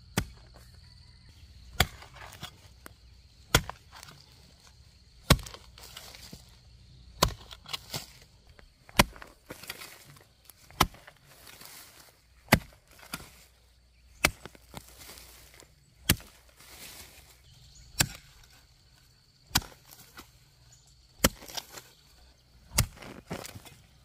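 A hoe chops into soft earth with steady, regular thuds.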